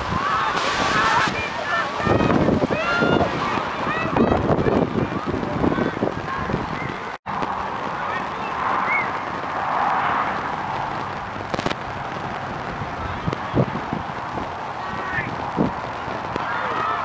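Young men shout and call to one another across an open field.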